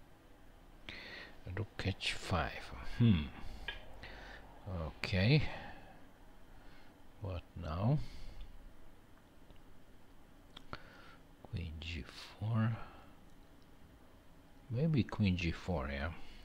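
A middle-aged man speaks calmly into a headset microphone, with pauses.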